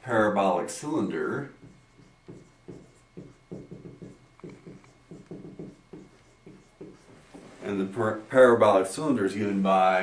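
A man speaks calmly nearby, as if lecturing.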